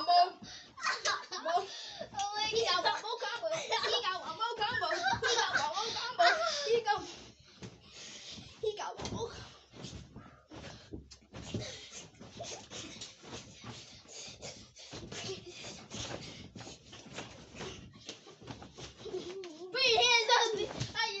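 Feet thump and bounce on a springy mattress.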